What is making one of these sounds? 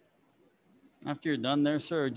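A man calls out a loud command.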